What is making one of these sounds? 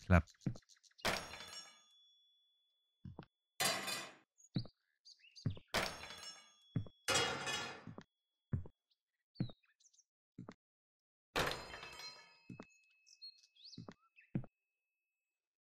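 A block lands with a short thud.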